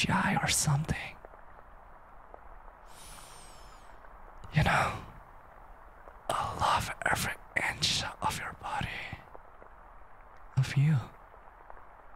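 A young man speaks softly and playfully, close to a microphone, in short bursts with pauses.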